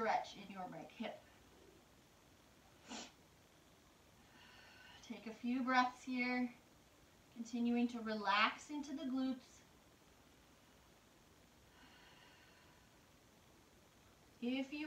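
A woman speaks calmly and close by, with pauses.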